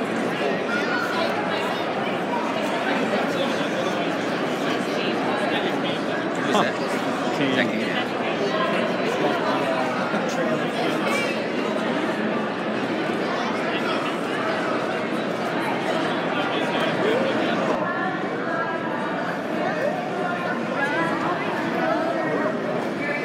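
A crowd of men, women and children chatters loudly, echoing in a large hall.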